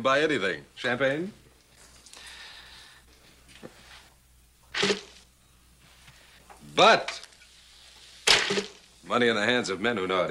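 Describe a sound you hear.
A middle-aged man speaks cheerfully and laughs close by.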